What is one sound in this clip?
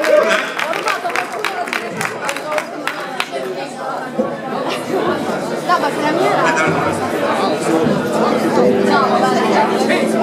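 A live band plays amplified rock music.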